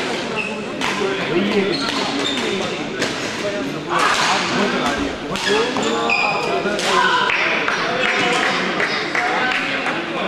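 Rackets smack a shuttlecock in quick rallies, echoing in a large hall.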